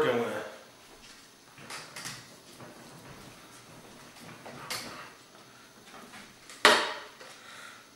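A knife cuts through meat on a wooden board.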